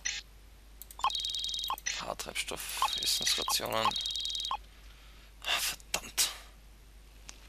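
Interface clicks and coin chimes sound in quick succession.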